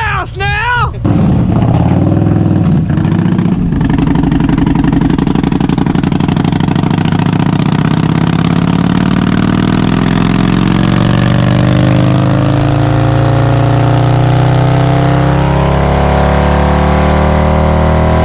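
A motorcycle engine roars loudly, revving higher and higher.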